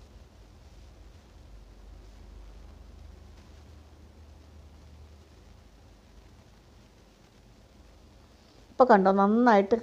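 A spatula stirs and scrapes a thick, sticky paste in a pot.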